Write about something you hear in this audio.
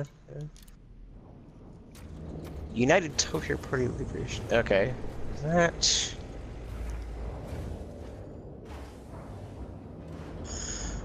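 A spaceship engine hums low and steady.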